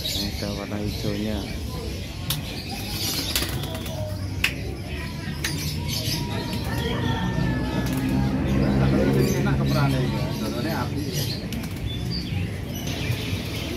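Caged birds chirp and tweet all around.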